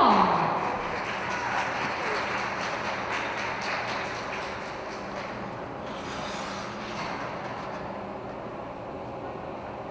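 Ice skate blades scrape and glide across the ice in a large echoing hall.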